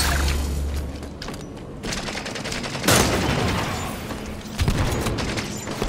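An energy sword hums and swishes.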